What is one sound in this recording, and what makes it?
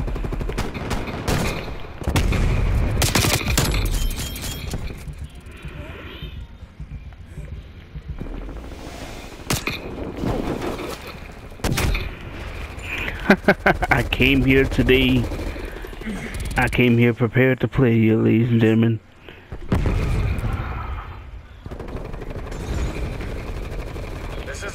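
Sniper rifle shots crack loudly, one at a time.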